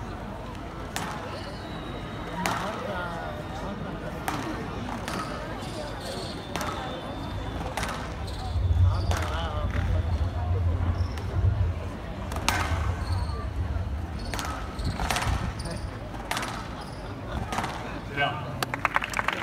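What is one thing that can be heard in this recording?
A squash ball smacks sharply against walls and rackets in a fast rally, in an echoing hall.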